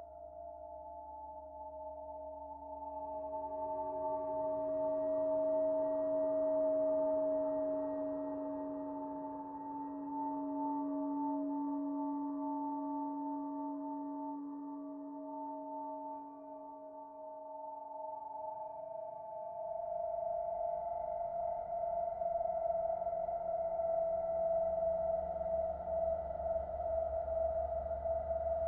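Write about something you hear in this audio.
A synthesizer plays steady, slowly shifting drone tones.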